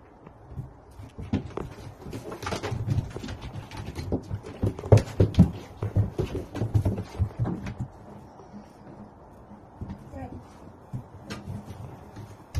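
Paws scrabble and thump on a hard floor.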